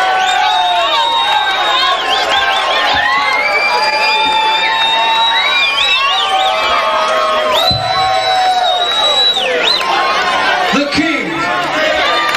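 A man sings through a microphone over loudspeakers.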